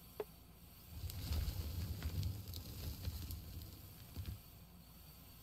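A load of dirt pours out of a loader bucket with a heavy rumble.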